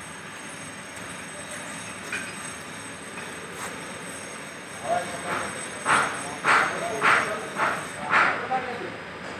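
Molten metal pours into a ladle with a steady rushing hiss.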